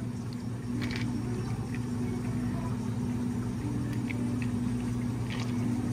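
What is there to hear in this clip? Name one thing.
Coffee trickles over ice.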